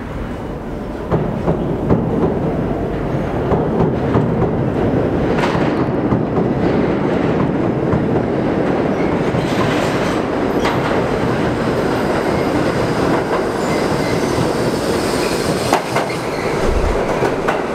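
A subway train rumbles and screeches loudly as it pulls into an echoing station.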